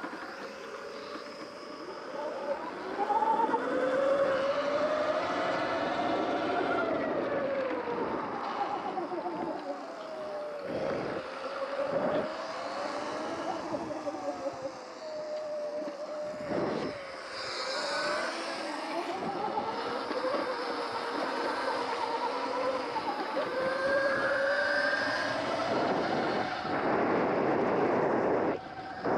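An electric motorbike's motor whines, rising and falling in pitch as it speeds up and slows down.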